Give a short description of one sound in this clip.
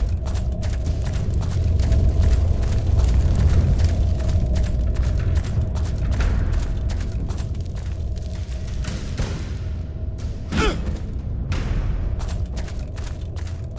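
Heavy armoured footsteps clank steadily on a stone floor.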